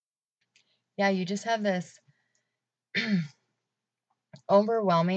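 A young woman speaks calmly and close to the microphone, in short bursts with pauses.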